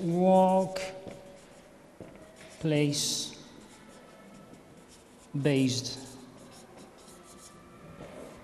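A marker squeaks on paper.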